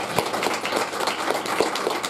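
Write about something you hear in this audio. A young child claps her hands.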